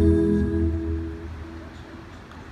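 Music plays over loudspeakers in a large echoing hall and fades out.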